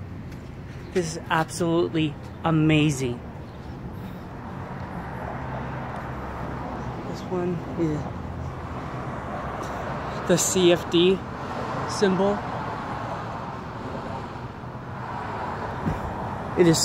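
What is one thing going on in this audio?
A young man talks close by, calmly.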